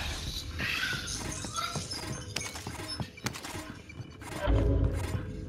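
Footsteps thud steadily across a wooden floor.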